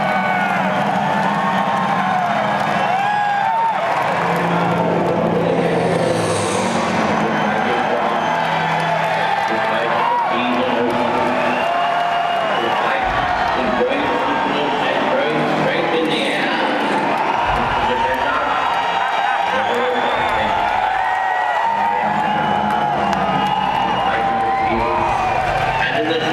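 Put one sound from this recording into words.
A large crowd chants and sings loudly in a huge echoing venue.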